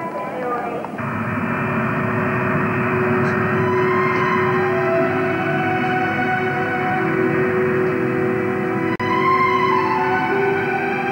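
A jet engine roars and whines steadily.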